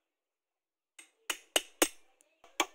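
A file rasps against wood.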